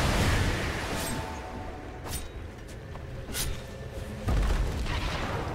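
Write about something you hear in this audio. Magic spells whoosh and crackle in quick bursts.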